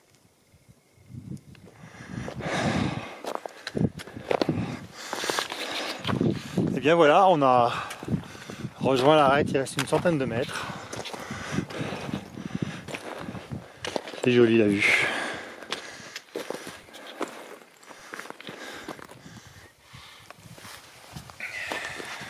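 Boots crunch on loose stones as someone walks.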